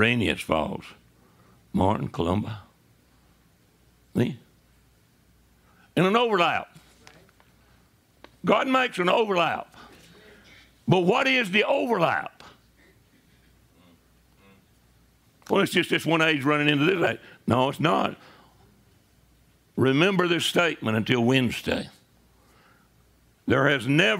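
An elderly man lectures with animation, in bursts between pauses.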